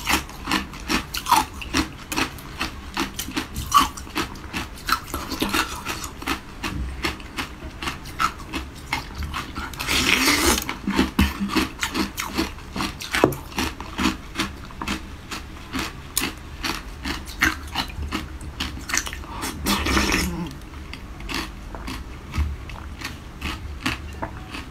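A young woman chews and crunches loudly close to a microphone.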